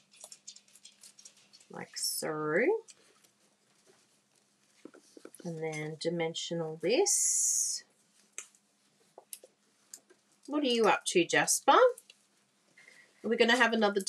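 Paper rustles and taps as it is handled.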